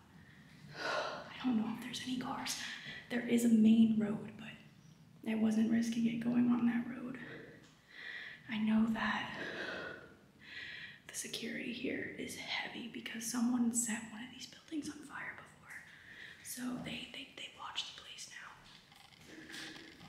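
A young woman talks animatedly close to the microphone.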